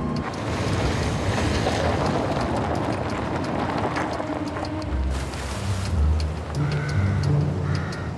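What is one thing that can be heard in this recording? Tyres crunch on loose gravel.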